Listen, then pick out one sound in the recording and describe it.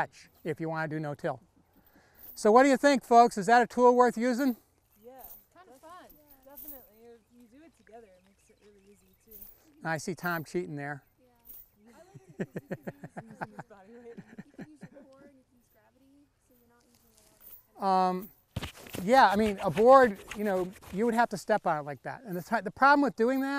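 An elderly man talks calmly to a small group outdoors.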